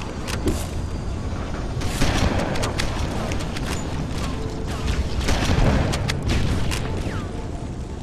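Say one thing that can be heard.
A shotgun fires loud, sharp blasts.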